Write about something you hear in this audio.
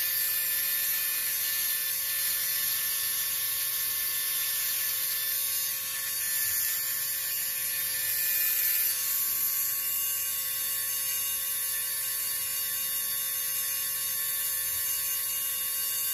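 A small electric drill whirs steadily at a high pitch.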